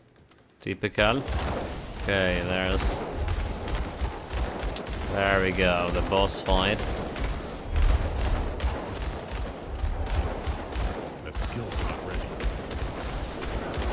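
Magic blasts crackle and boom in rapid succession.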